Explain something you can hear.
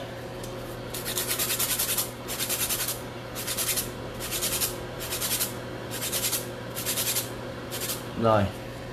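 A nail file rasps in quick, even strokes.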